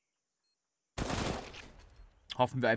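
A rifle fires a short burst with a ringing echo.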